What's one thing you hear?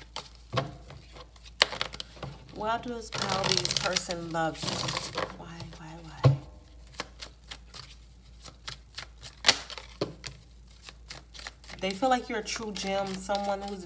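Playing cards are shuffled by hand with quick crisp flutters.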